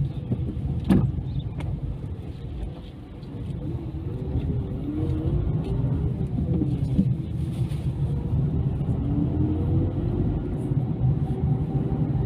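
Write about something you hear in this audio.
A car engine hums from inside the car as it drives.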